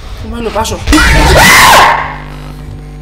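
An animatronic creature lets out a loud, harsh screech.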